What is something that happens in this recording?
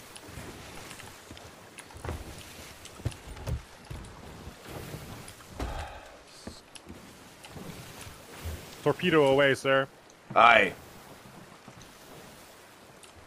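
Waves crash and churn around a wooden boat.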